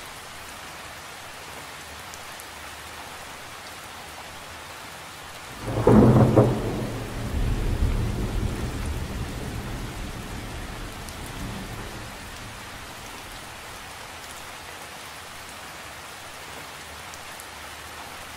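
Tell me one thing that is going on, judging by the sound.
Rain patters steadily on the surface of a lake outdoors.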